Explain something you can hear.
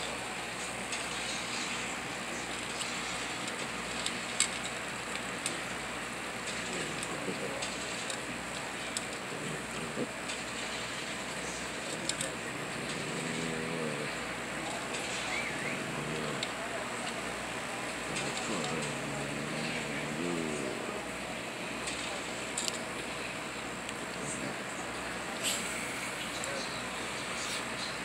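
A dog crunches dry food from a bowl.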